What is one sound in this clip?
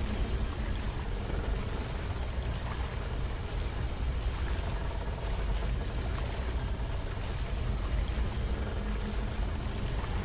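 A wooden water wheel creaks and splashes as it turns.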